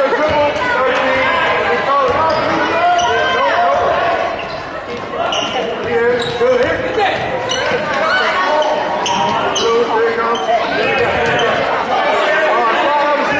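A crowd in a large echoing gym chatters and cheers throughout.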